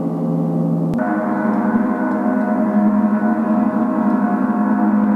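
A gong is struck and rings out with a rich, shimmering drone.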